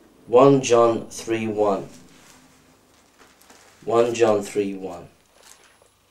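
A middle-aged man speaks calmly and close by, in short bursts.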